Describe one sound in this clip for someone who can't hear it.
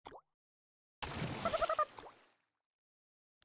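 A reward jingle chimes brightly.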